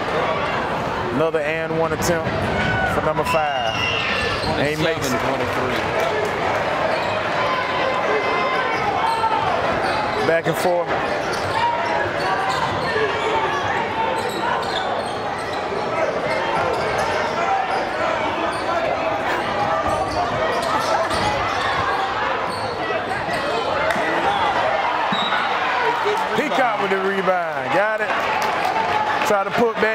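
A crowd murmurs and cheers in a large echoing gym.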